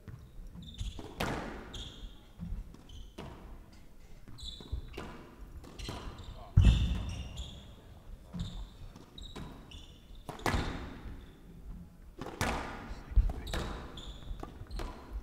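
A squash ball smacks sharply against walls in a quick rally, echoing in a large hall.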